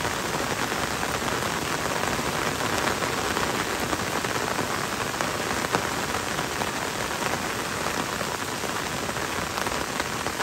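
Gentle rain patters on leaves and a wet road.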